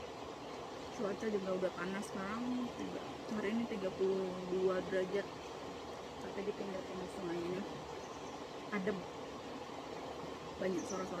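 A young woman speaks calmly close to the microphone.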